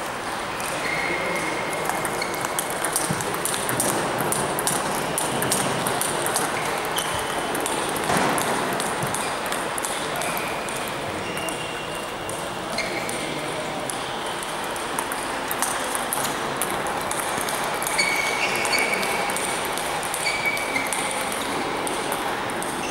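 A table tennis ball clicks back and forth off paddles and the table in a large echoing hall.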